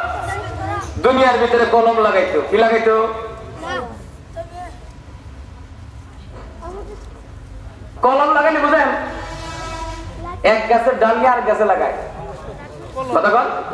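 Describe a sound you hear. A man preaches loudly and with fervour through a microphone and loudspeakers, echoing.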